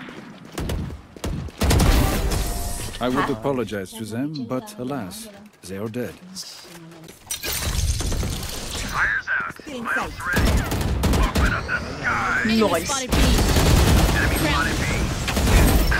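A rifle fires in short, rapid bursts close by.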